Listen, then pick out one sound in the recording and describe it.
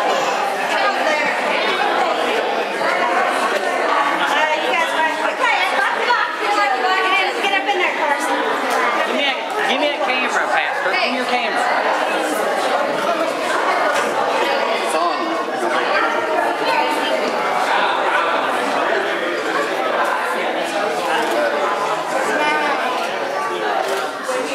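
Several men and women chatter and talk over one another nearby in an echoing room.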